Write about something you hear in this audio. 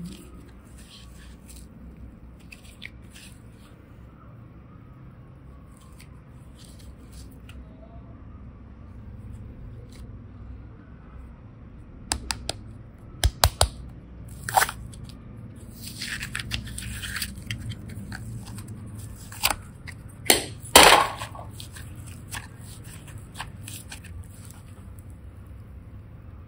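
Soft modelling clay squishes and crackles faintly as hands knead and stretch it.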